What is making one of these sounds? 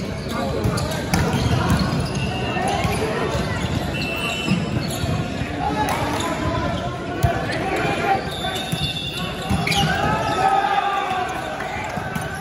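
A volleyball is struck by hands.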